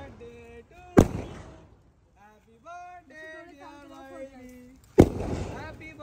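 Party poppers go off with sharp, loud bangs.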